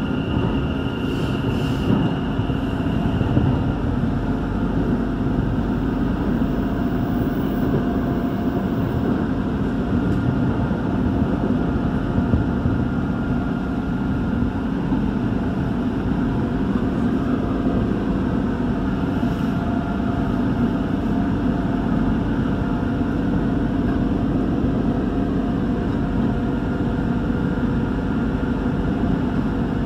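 An electric commuter train rumbles along the track at speed, heard from inside a carriage.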